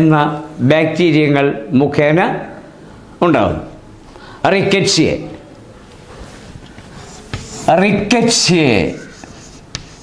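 An elderly man speaks slowly and clearly into a nearby microphone.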